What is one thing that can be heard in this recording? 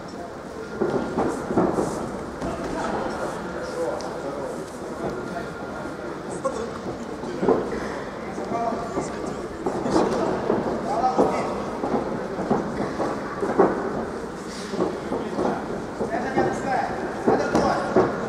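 Punches and kicks thud against bodies.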